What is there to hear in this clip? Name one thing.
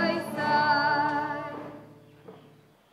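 A young woman sings a long note through a microphone and loudspeaker in an echoing hall.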